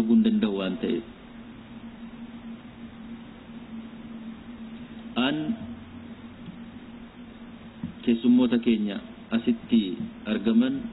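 A man speaks calmly into microphones, with pauses.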